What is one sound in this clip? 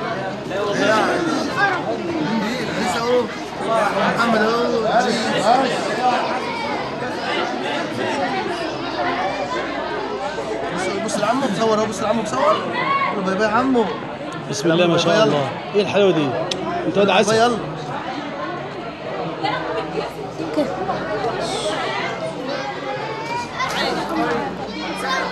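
A crowd of men, women and children chatters all around, close by.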